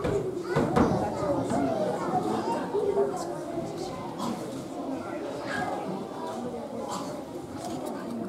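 Children's feet patter across a wooden stage.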